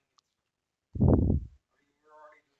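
A stone block is set down with a dull thud.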